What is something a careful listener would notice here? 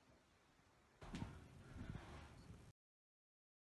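Footsteps thud close by on a floor.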